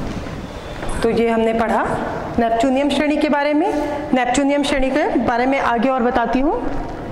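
A woman sings in a clear, steady voice.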